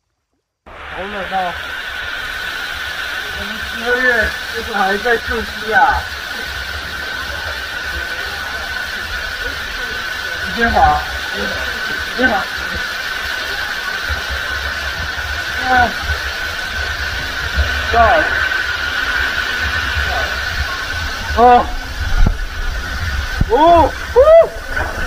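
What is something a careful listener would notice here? A young man talks with animation, close up.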